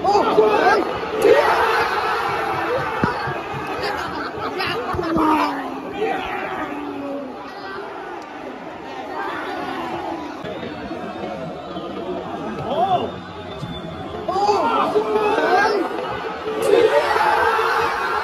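Men nearby shout and cheer excitedly.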